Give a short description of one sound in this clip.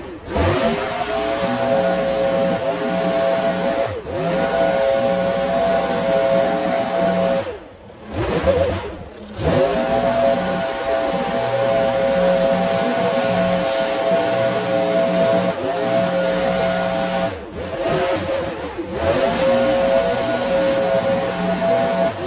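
A leaf blower whines loudly and steadily, briefly cutting out and revving back up.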